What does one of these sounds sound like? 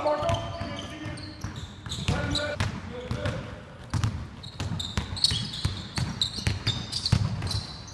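A basketball bounces on a hard court, echoing in a large hall.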